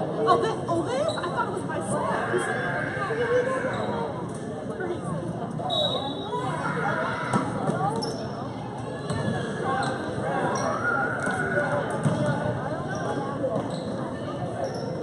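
A crowd of spectators chatters steadily in a large echoing gym.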